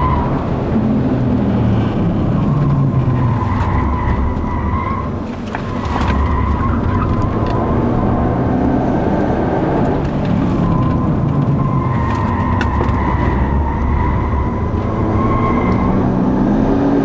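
Tyres squeal on the track through the turns.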